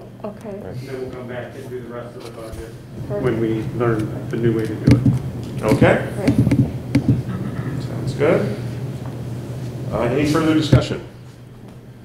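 A middle-aged man speaks calmly through a face mask.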